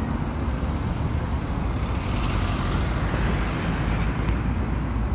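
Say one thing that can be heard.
A diesel van drives past close by.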